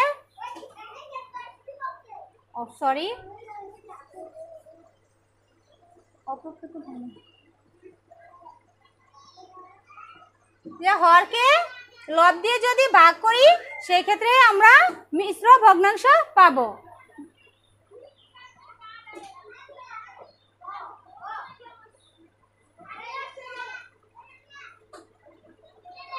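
A young woman speaks close by, at times reading out in a drawn-out, sing-song voice.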